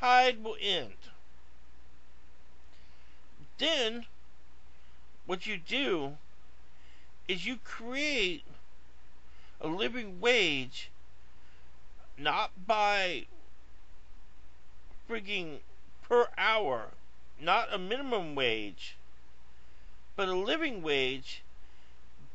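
A middle-aged man speaks slowly and close up, in short bursts with pauses.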